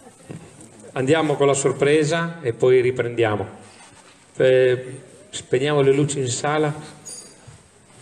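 An older man speaks calmly into a microphone, heard over loudspeakers in a large echoing hall.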